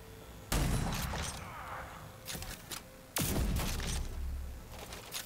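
A heavy gun fires loud booming shots that echo away.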